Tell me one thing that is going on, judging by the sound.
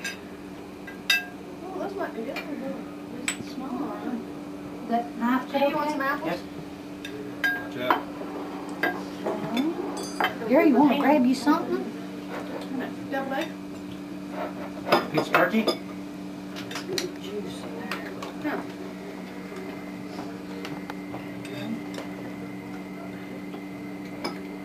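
Cutlery clinks against plates and dishes.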